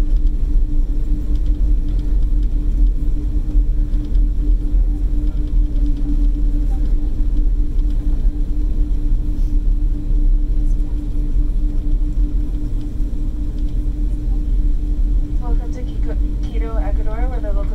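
Aircraft wheels rumble along a runway.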